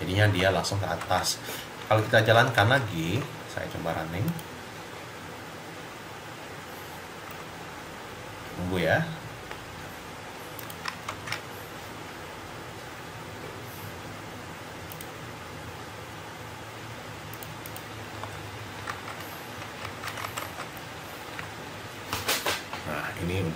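A man speaks calmly into a microphone, in short bursts.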